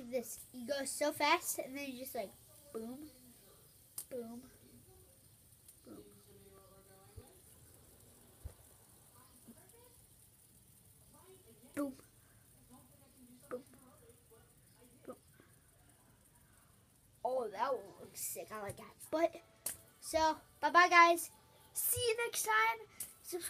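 A boy talks close to the microphone with animation.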